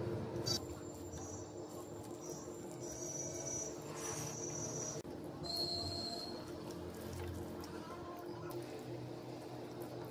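Soft rice squishes and rustles as it is mixed by hand.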